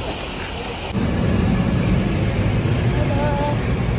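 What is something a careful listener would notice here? A bus engine rumbles close by.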